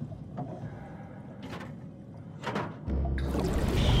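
A heavy metal lever is pulled down with a clank.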